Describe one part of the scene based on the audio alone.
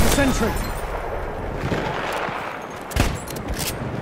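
A rifle bolt clicks as a weapon is reloaded.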